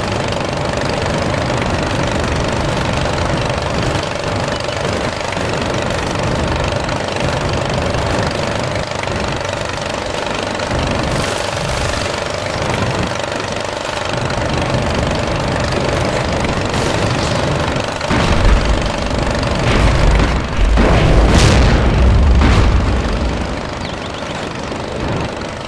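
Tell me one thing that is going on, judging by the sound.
A tank engine rumbles and clanks steadily.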